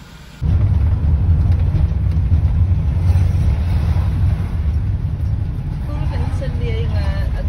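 A car engine rumbles steadily from inside the moving car.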